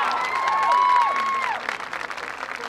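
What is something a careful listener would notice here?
A marching band's brass plays a loud, held chord that cuts off.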